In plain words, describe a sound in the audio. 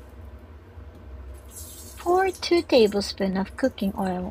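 Oil pours and glugs from a plastic bottle.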